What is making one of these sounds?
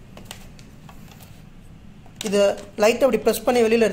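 A plastic cover clicks and scrapes as it is pried off.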